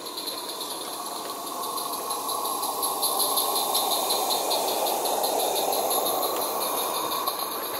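Small train wheels click rhythmically over rail joints.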